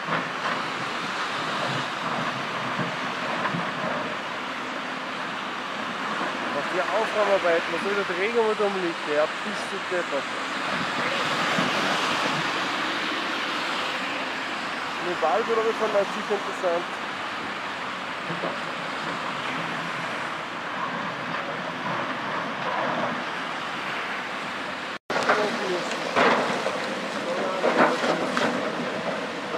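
An excavator engine rumbles.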